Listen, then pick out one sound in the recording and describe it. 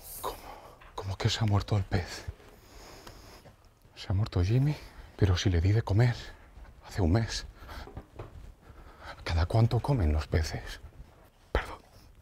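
A young man talks loudly and with animation into a phone nearby.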